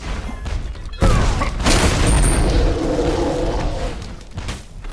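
A loud fiery explosion bursts and roars.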